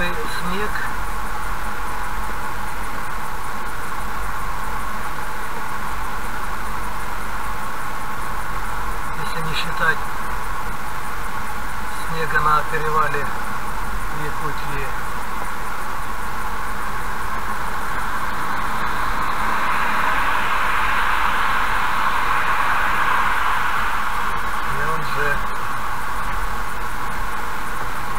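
Tyres hum steadily on a wet road inside a moving car.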